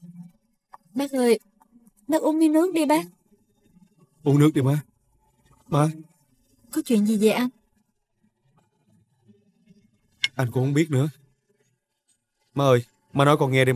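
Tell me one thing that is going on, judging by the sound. A woman speaks in an upset voice nearby.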